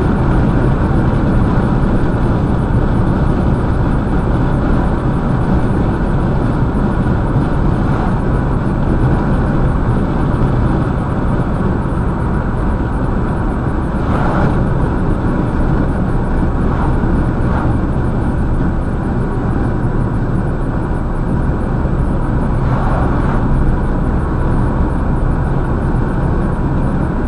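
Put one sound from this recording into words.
A car's engine and tyres rumble steadily on a highway from inside the car.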